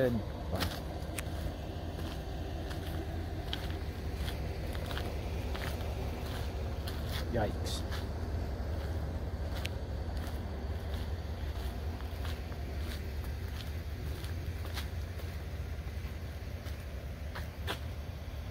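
Footsteps crunch slowly on a gritty road.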